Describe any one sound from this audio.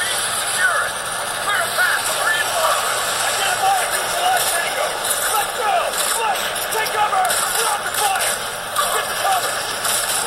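Gunfire and explosions play from a handheld game's small speaker.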